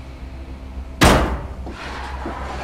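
A heavy wooden crate lands with a loud thud.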